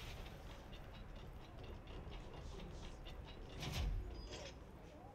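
A heavy metal door rumbles open.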